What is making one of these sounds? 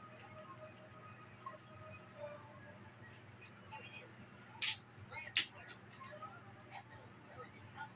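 A television plays music and sound effects quietly.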